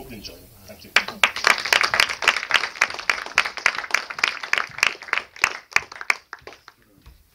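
An audience claps loudly in a large hall.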